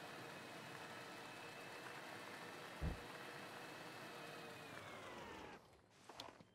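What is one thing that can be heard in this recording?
A small vehicle's engine hums steadily as it drives, then drops in pitch and cuts out.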